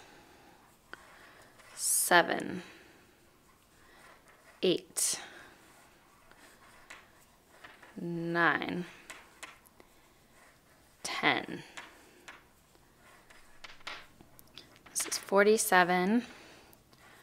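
Wooden knitting needles tap and click softly against each other.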